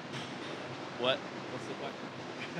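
A man answers briefly into a handheld microphone.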